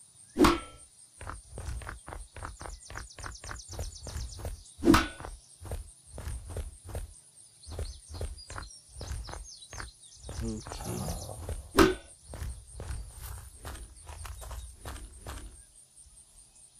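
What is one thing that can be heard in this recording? Footsteps thud quickly and evenly.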